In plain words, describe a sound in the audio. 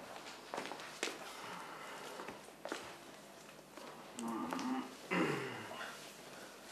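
A man grunts and strains while struggling with another man.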